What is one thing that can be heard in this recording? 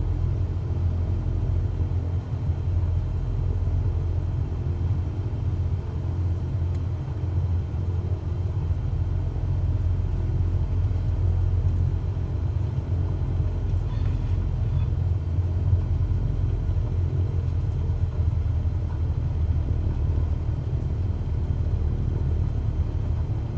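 A small propeller engine drones steadily at low power.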